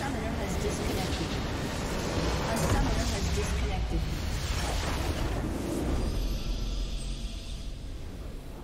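A large structure bursts apart with a loud rumbling blast.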